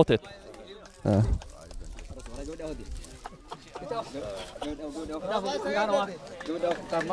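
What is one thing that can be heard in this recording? A group of men cheer and talk excitedly nearby.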